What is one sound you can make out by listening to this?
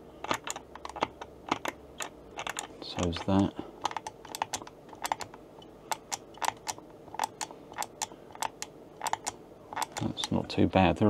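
A joystick clicks sharply as it is pushed around.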